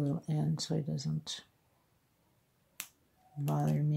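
Scissors snip a thread.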